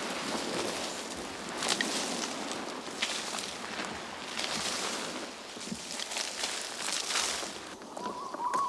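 A large lizard's feet crunch and rustle through dry leaves.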